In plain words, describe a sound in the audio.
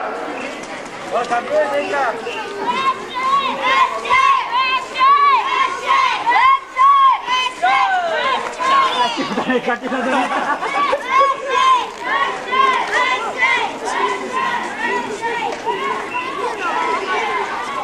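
A group of boys shouts a loud, rhythmic chant outdoors.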